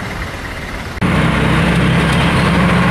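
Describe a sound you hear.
A motorbike and cars roar past close by.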